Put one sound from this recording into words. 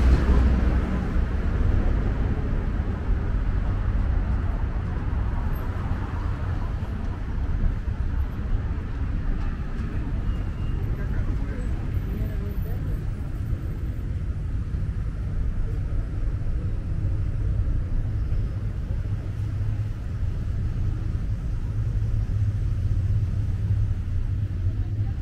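Traffic rumbles along a nearby street outdoors.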